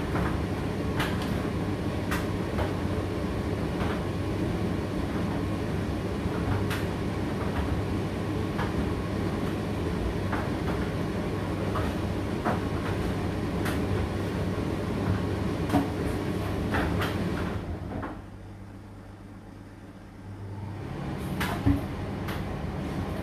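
A condenser tumble dryer runs with a low hum as its drum tumbles.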